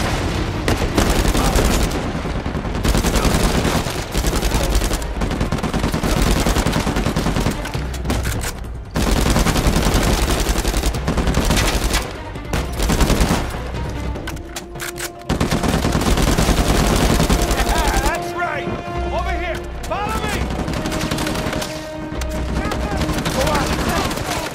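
Rifles fire in rapid bursts, with loud gunshots cracking close by.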